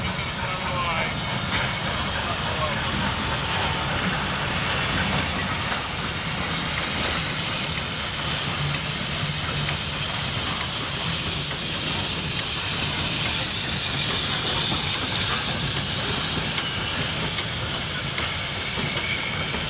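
Old passenger carriages rumble and clatter along the rails.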